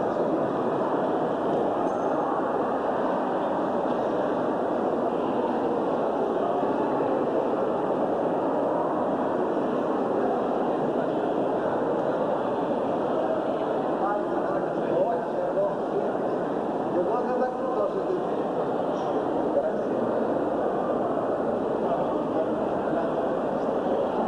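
A crowd of men murmurs and talks in an echoing room.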